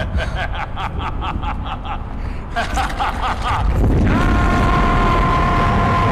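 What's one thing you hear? A man laughs loudly and maniacally.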